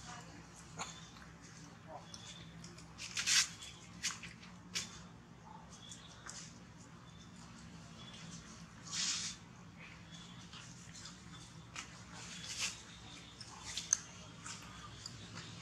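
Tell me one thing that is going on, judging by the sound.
A monkey chews and smacks noisily on fruit close by.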